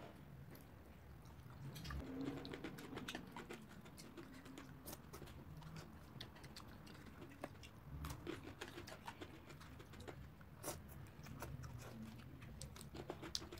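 A young woman chews food wetly with smacking sounds, close up.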